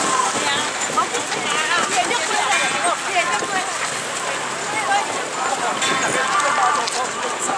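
A large crowd of men and women chatters close by, outdoors.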